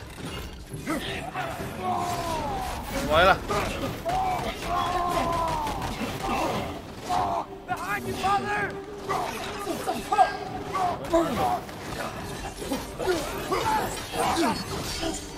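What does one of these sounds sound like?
Weapon blows clash and thud in a fight.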